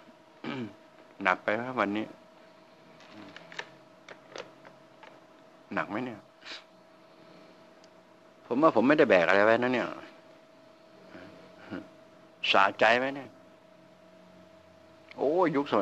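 An elderly man speaks calmly into a close microphone, in short bursts with pauses.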